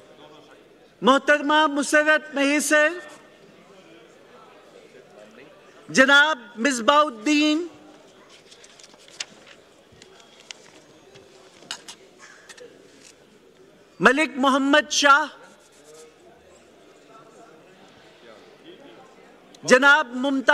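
A man speaks in short bursts over a loudspeaker in a large echoing hall.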